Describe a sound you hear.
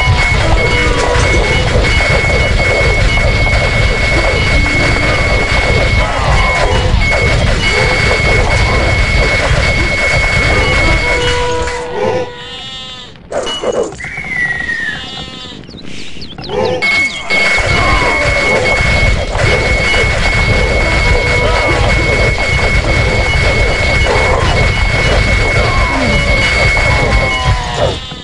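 Metal weapons clash and clatter in a noisy battle.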